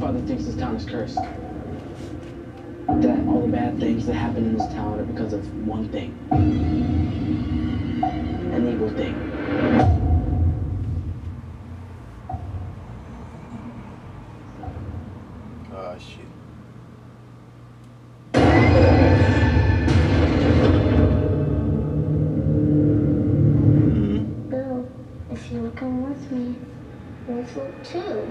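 Dramatic music plays through a speaker.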